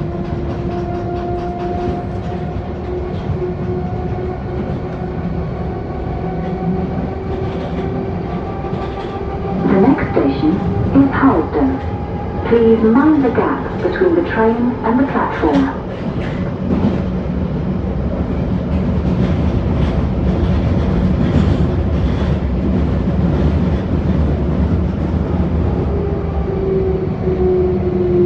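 Train motors whine with a steady pitch that slowly shifts.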